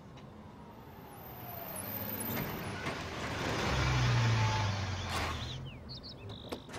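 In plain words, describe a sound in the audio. A truck engine rumbles as the truck rolls past.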